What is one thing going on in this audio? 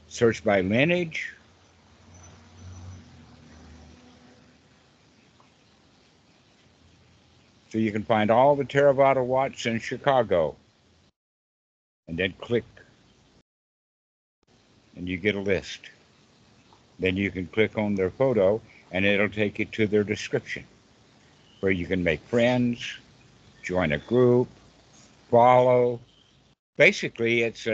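An elderly man speaks and laughs through an online call.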